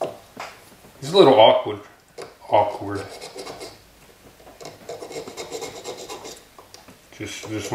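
A small blade scrapes against wood in short repeated strokes.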